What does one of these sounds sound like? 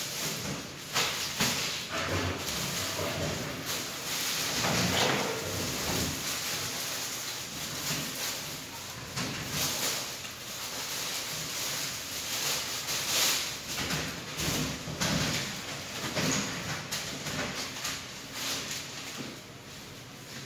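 Plastic bags crinkle as they are handled.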